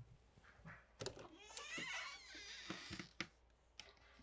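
A door unlatches and swings open.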